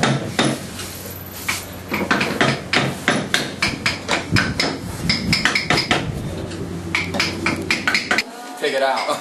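A small hand tool scrapes and taps on wood in quick strokes.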